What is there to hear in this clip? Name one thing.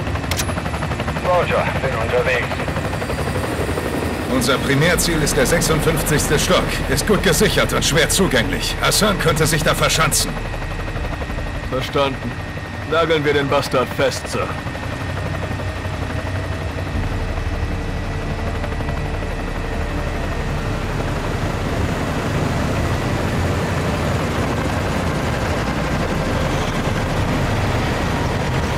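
A helicopter's rotor and engine drone steadily from close by.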